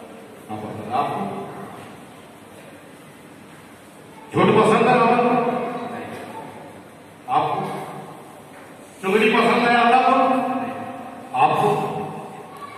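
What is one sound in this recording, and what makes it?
A man sings or recites loudly in long melodic phrases through a microphone, echoing in a large hall.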